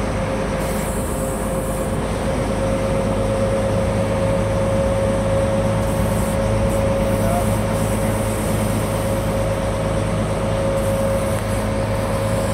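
A boat engine drones steadily and evenly.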